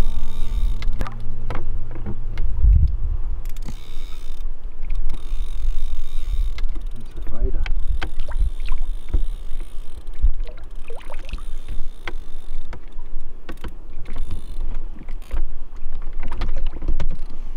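A fish splashes and thrashes at the surface of the water close by.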